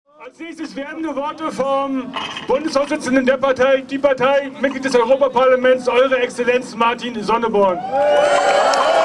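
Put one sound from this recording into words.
A man speaks forcefully through a loudspeaker outdoors.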